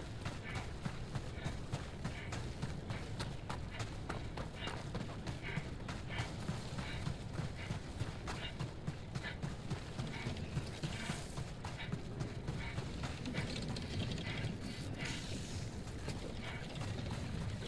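Footsteps crunch quickly over rough, stony ground.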